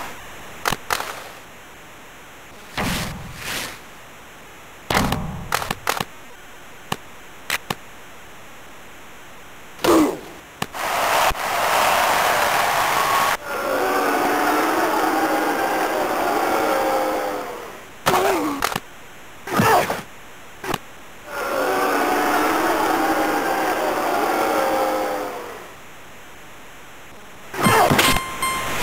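Hockey sticks strike a puck with sharp clacks.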